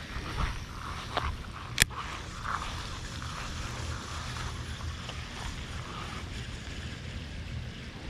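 A fishing reel clicks and whirs as line is wound in.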